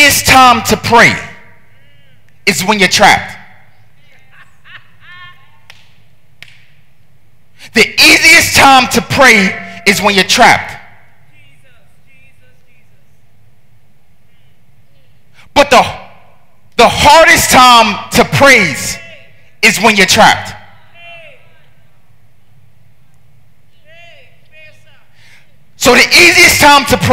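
A man preaches with animation through a microphone, in loud bursts between pauses, in a reverberant hall.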